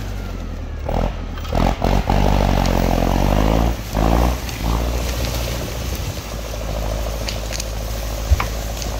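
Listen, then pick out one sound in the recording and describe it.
A tractor engine rumbles nearby and revs up loudly at times.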